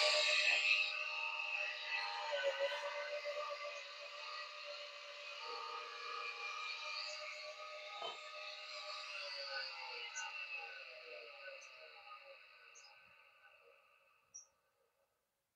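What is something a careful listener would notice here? A bench grinder motor whines steadily, then slowly winds down to a stop.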